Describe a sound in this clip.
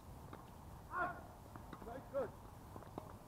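A tennis ball smacks off a racket close by.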